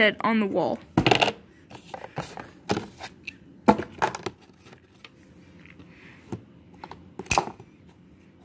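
Small objects knock and tap against cardboard.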